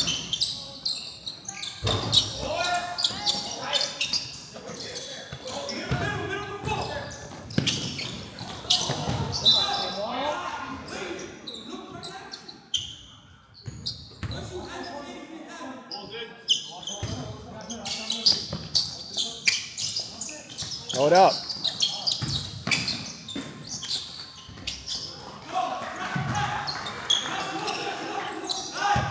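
Young players shout to each other across the court.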